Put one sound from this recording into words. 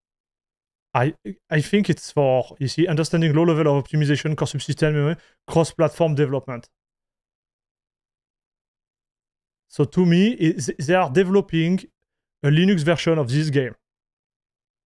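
A man speaks calmly and close into a microphone, with pauses.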